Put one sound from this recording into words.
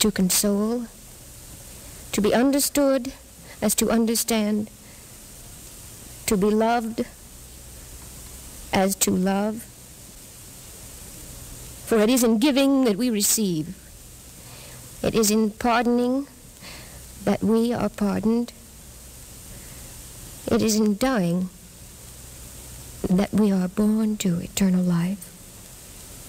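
A man reads out slowly through a microphone, with long pauses.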